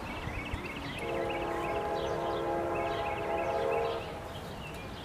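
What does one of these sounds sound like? A train horn blows loudly in the distance.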